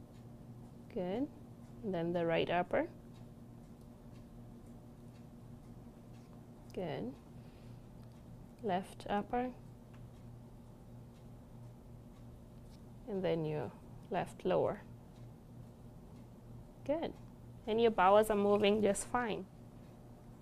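A woman speaks calmly nearby, in short phrases with pauses.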